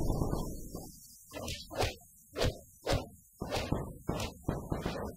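Heavy blows land with dull thuds, again and again.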